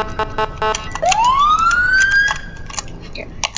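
A siren winds up in pitch.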